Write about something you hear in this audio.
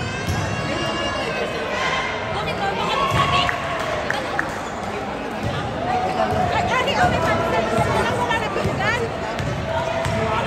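A crowd of men and women chatter and call out in a large echoing hall.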